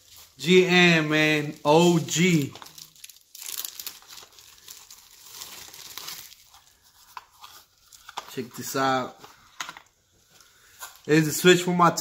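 A plastic bag crinkles and rustles in someone's hands.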